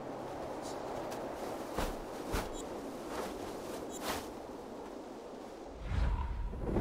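Wind rushes steadily as a bird glides high above.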